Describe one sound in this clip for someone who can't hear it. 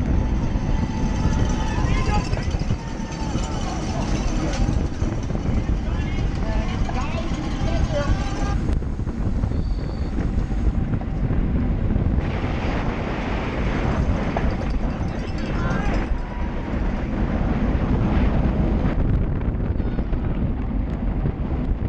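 Wind roars and buffets loudly against a fast-moving bicycle.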